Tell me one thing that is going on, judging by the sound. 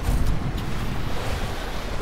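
A hose sprays water with a hiss.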